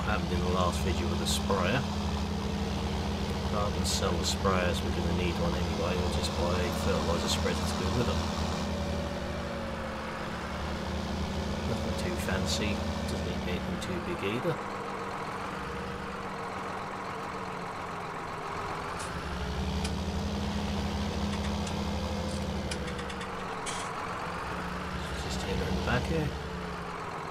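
A tractor engine rumbles steadily, rising and falling as it speeds up and slows down.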